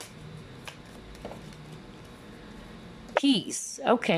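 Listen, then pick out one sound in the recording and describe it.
A card is laid down on a wooden table with a soft tap.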